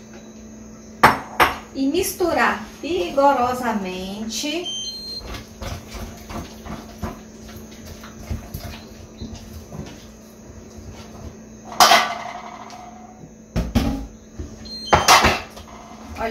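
A spoon stirs thick batter in a pan.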